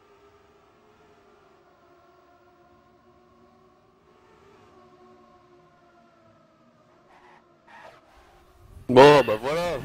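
A racing car engine hums steadily at high revs.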